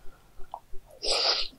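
A woman slurps noodles close to a microphone.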